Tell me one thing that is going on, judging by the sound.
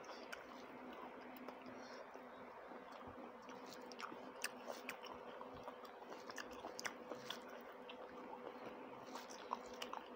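A woman chews and smacks her lips close to a microphone.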